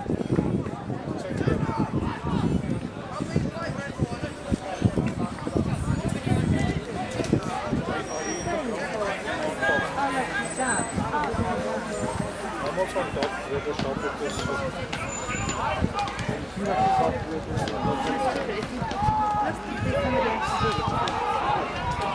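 Young men shout and call to each other on an open field.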